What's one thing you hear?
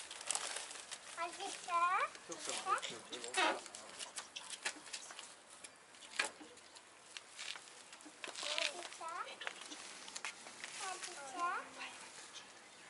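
A woman talks nearby outdoors.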